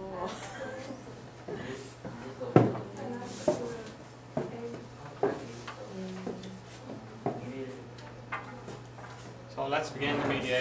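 Young women talk quietly nearby.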